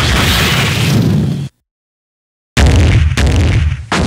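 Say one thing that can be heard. A heavy body thuds to the ground.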